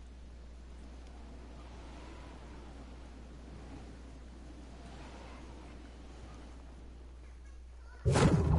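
Wind rushes softly past a glider.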